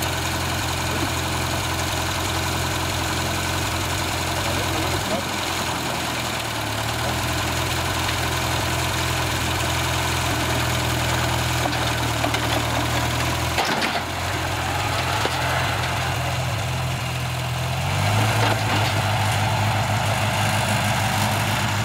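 An old tractor engine chugs steadily nearby.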